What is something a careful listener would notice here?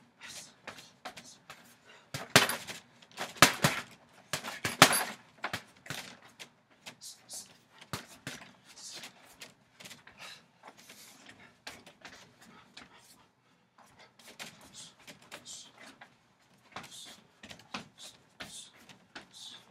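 Feet shuffle and scuff on wooden boards.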